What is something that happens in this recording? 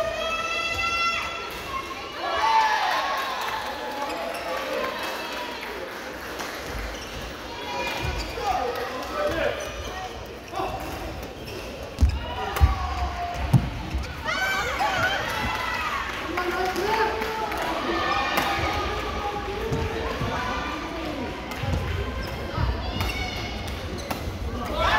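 Many people chatter and call out across a large echoing hall.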